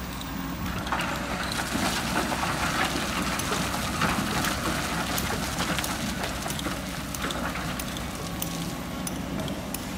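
Rocks and soil pour from an excavator bucket into a truck with a rattling rush.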